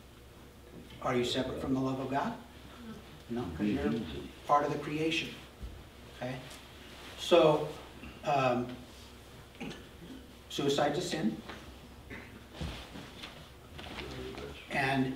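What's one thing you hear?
A middle-aged man speaks calmly in bursts with pauses, in a room with a slight echo.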